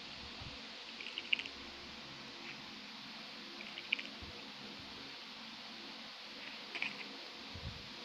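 Soft game menu clicks sound now and then.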